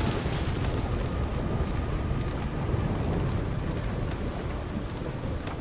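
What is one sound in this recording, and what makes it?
Waves splash against a ship's hull.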